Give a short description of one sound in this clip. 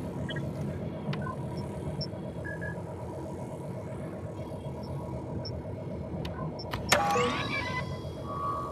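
A low engine hum drones steadily.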